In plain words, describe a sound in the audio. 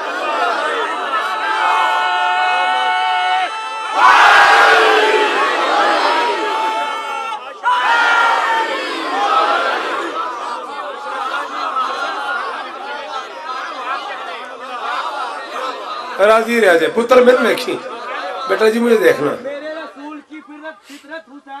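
A man speaks passionately into a microphone, heard through loudspeakers in an echoing space.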